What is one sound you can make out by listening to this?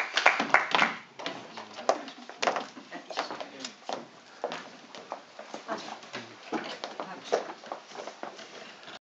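People in an audience murmur and chat quietly.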